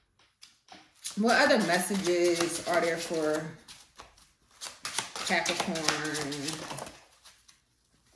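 Cards shuffle softly in a woman's hands.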